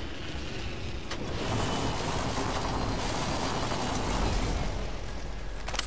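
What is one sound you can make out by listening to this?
Wind rushes loudly during a fast fall through the air, then dies away.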